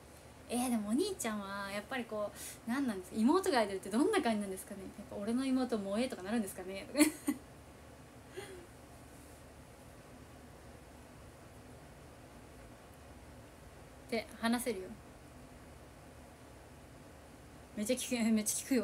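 A young woman talks and laughs with animation, close to a microphone.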